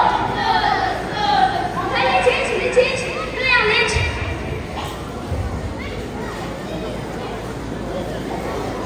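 Singers perform a lively song in a large hall.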